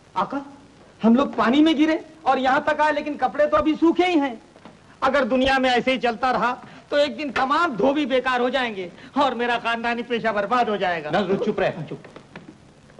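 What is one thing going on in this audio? A man sings loudly, heard through an old, hissy recording.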